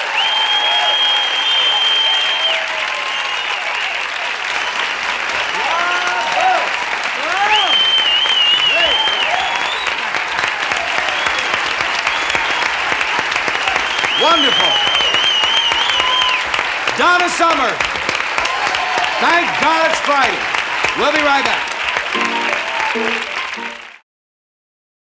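A crowd applauds loudly and steadily.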